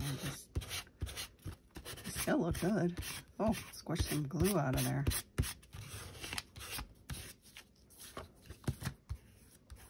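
An ink pad dabs softly against paper.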